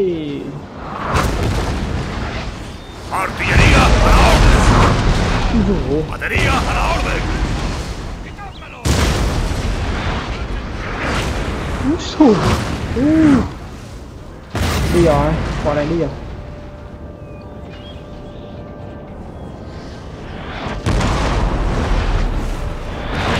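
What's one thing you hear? Musket volleys crackle and boom in bursts across an open field.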